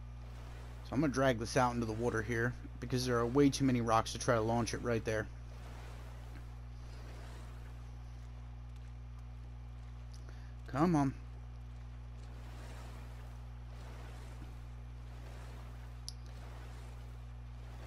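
Water sloshes softly as a swimmer strokes through it.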